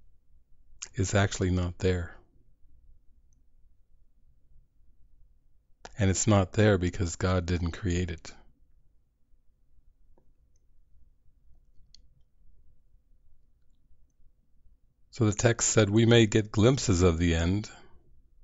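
A man speaks calmly into a close microphone, with long pauses.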